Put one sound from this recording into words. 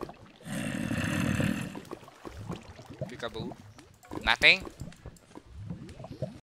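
Lava pops and bubbles.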